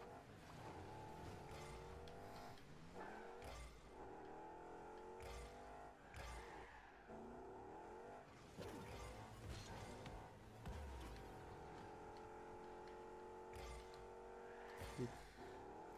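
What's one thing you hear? A car engine hums and revs up and down with each burst of speed.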